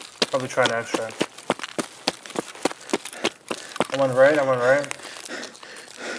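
Footsteps crunch quickly on a gravel road.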